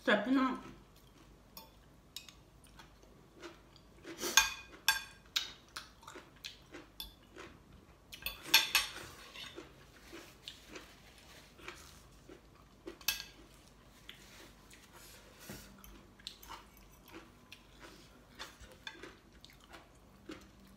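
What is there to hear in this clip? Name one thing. A fork and spoon clink against a plate.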